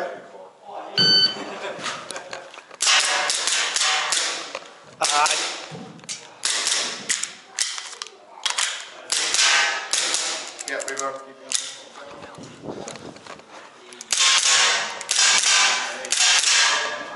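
A toy gun fires with sharp pops.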